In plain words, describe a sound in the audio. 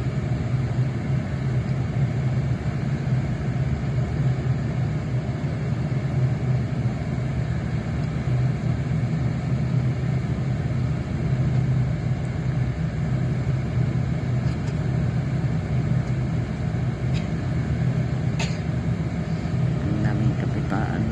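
A vehicle's engine drones, heard from inside the vehicle.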